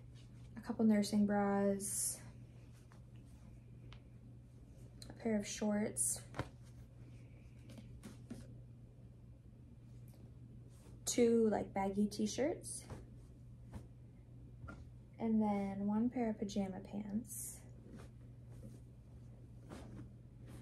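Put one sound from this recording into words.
Clothes rustle as they are folded and packed.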